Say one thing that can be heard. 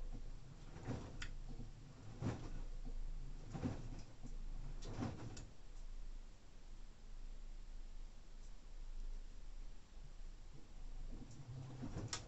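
Wet laundry tumbles and thuds inside a washing machine drum.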